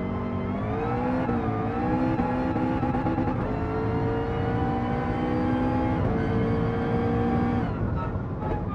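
A race car engine roars at high revs, its pitch climbing with each gear and dropping at each shift.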